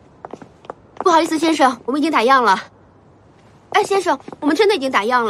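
A young woman speaks earnestly up close.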